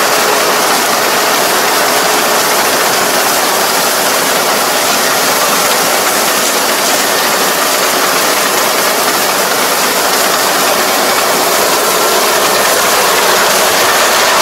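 A combine harvester's engine drones loudly and steadily close by.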